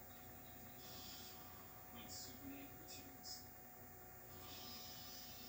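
A television soundtrack plays quietly through a small loudspeaker.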